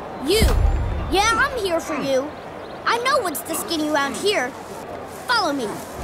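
A young girl speaks up close.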